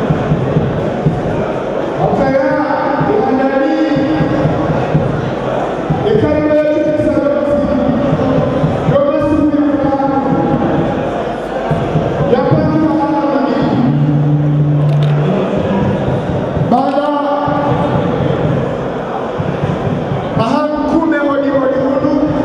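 An older man speaks forcefully into a microphone, heard through a loudspeaker in an echoing hall.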